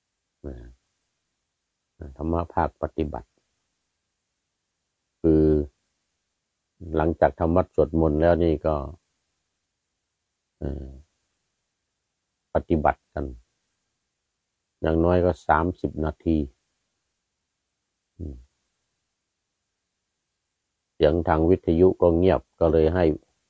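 A middle-aged man speaks calmly and close up, in short phrases with pauses.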